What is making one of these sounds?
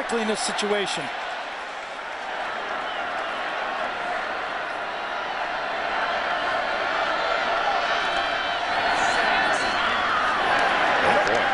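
A stadium crowd roars, growing louder.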